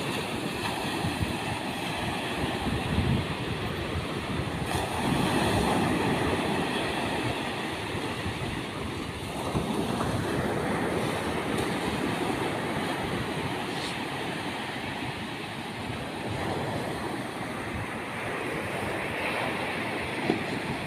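Waves break and wash up on a beach close by.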